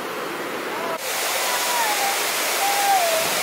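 A waterfall roars.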